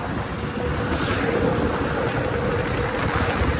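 A car passes close by.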